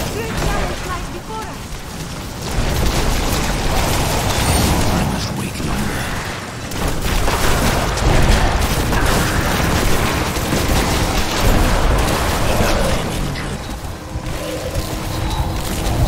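Magic beams crackle and zap in rapid bursts.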